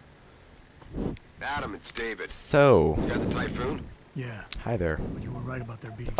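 A man speaks calmly over a radio.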